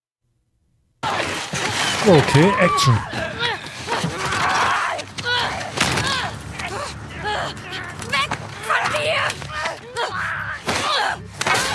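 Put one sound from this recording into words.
A young woman grunts and screams while struggling.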